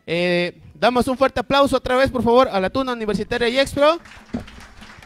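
A man speaks formally through a microphone, echoing in a hall.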